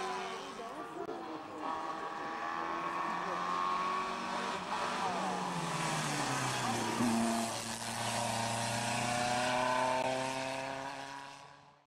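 A racing car engine screams up close and fades into the distance.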